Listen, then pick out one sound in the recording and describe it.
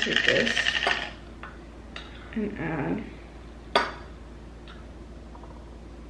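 A spoon clinks against a glass jar.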